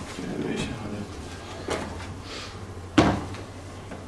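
A book thumps onto a table.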